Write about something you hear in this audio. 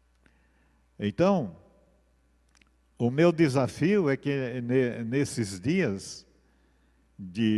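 An elderly man speaks calmly and slowly into a microphone, in pauses.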